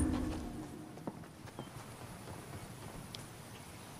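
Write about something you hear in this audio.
A metal door swings open.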